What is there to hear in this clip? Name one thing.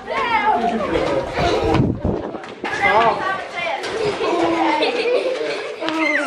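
Children shout and squeal excitedly nearby, outdoors.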